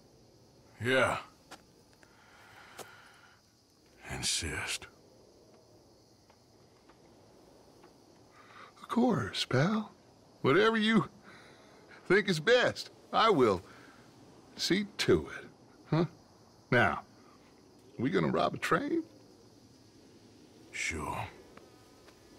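A man speaks in a low, gruff voice, close by.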